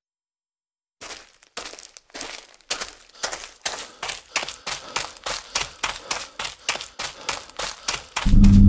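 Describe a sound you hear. Footsteps tread quickly and evenly on grass.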